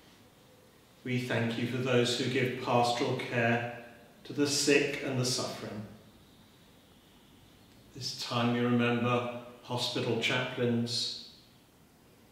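An elderly man speaks slowly and solemnly into a microphone in an echoing room.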